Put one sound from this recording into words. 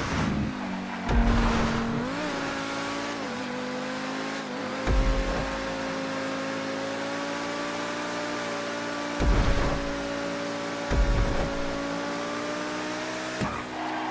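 A sports car engine hums steadily at high speed.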